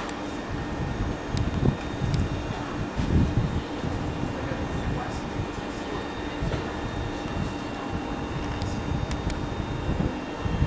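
An electric train stands at a platform, its equipment humming.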